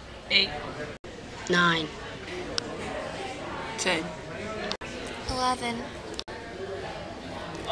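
A teenage boy speaks calmly, close by.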